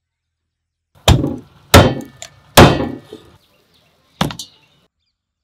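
A knife chops through chicken bones on a wooden block with sharp thuds.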